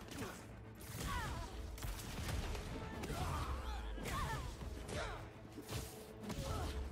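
Blows and clashes ring out in a video game fight.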